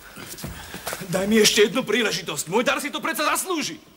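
A man shouts in protest.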